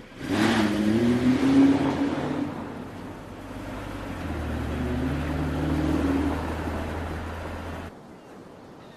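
A car engine hums as a car drives past.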